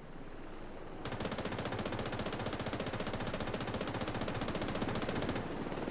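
A helicopter's rotor thumps overhead.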